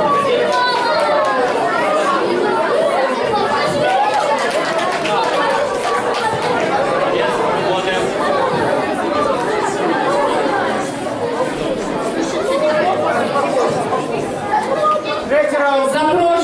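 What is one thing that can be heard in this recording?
A crowd of children and adults chatters and calls out throughout, echoing in a large hall.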